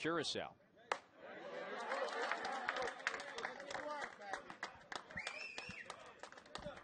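A crowd of spectators cheers and claps outdoors.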